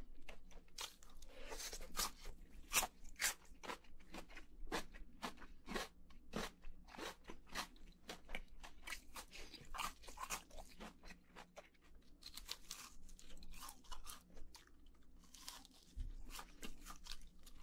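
A young man chews crunchy fried food loudly and close up.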